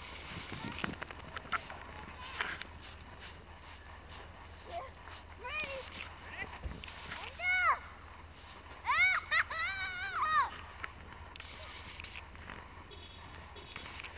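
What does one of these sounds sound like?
A dog bounds and shuffles through deep, crunching snow.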